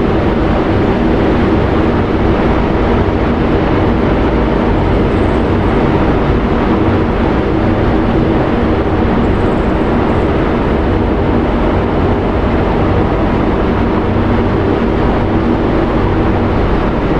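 A four-engine turboprop transport plane drones as it taxis away.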